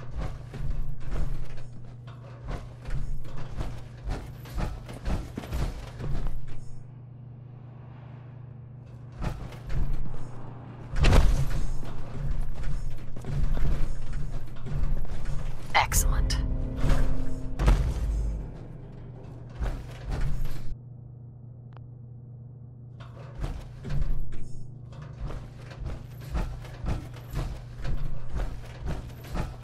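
Heavy metal footsteps clank on a hard floor.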